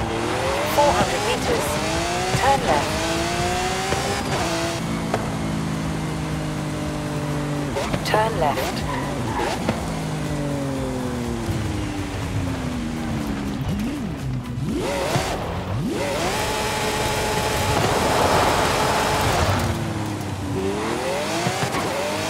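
A sports car engine roars and revs up and down through the gears.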